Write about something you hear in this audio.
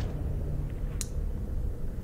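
A flashlight switch clicks on.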